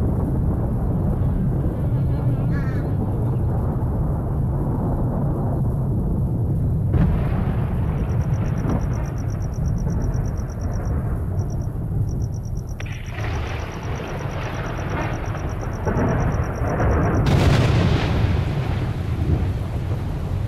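Wind blows steadily through trees outdoors.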